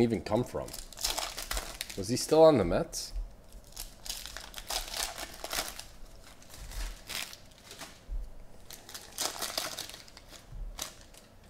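Foil wrappers crinkle and tear as they are ripped open.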